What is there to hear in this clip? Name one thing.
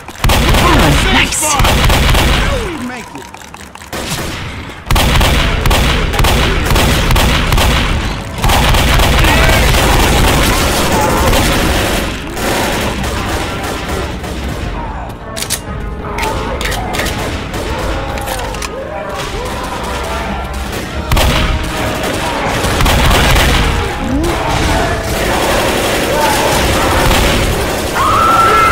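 Shotgun blasts boom again and again.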